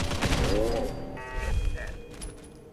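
An explosion booms loudly and debris rattles.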